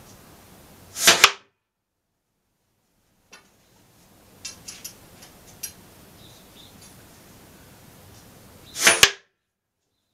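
A dart thuds sharply into a wooden board.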